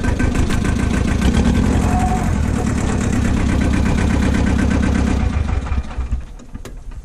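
A tractor engine runs loudly and steadily, then stops.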